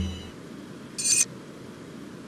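A short menu click sounds as a page turns.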